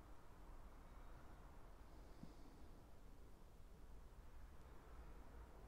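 A man puffs softly on a pipe close by.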